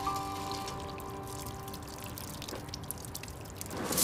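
Water pours from a watering can onto soil.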